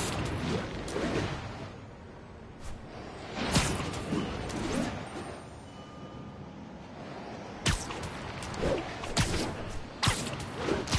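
Wind rushes past in swooping gusts as a figure swings through the air.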